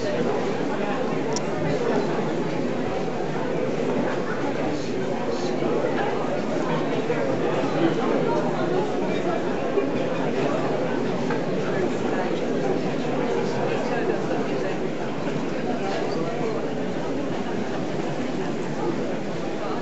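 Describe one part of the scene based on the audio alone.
An elderly man speaks to a crowd, heard from a short distance in a large echoing space.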